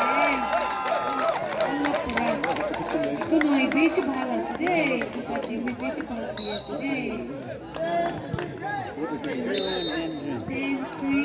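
A crowd of spectators chatters and shouts loudly outdoors.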